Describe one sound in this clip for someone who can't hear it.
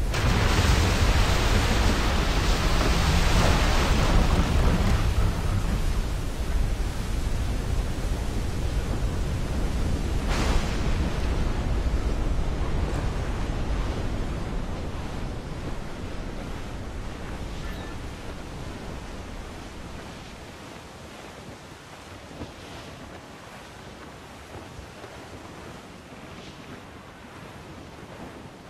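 Strong wind roars over a stormy sea and slowly dies down.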